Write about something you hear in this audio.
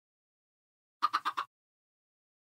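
A chicken clucks.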